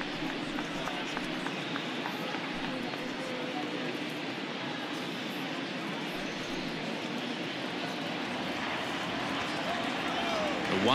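A large stadium crowd murmurs and chatters steadily.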